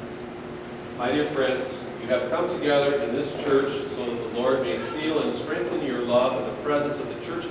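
An elderly man speaks calmly and clearly in a large echoing hall.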